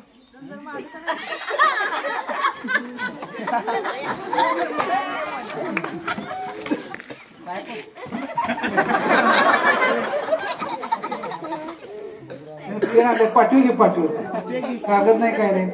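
A crowd of young men chatters and shouts loudly.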